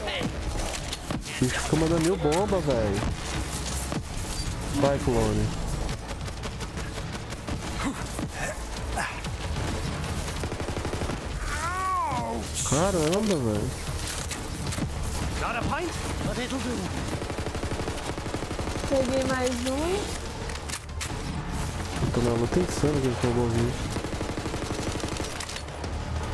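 Gunfire and energy blasts crackle from a video game.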